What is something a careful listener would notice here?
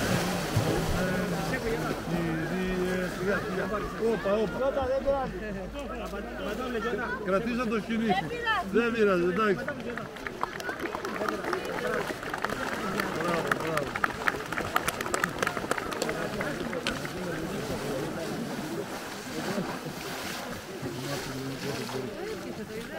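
Water splashes as a man wades quickly through a river.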